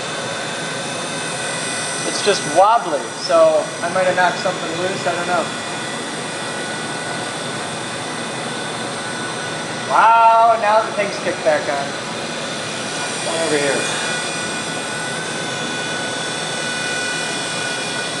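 Machines hum steadily.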